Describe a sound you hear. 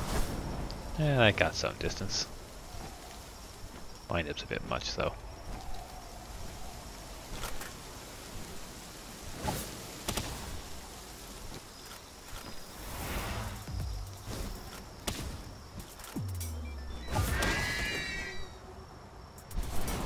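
A large bird creature screeches.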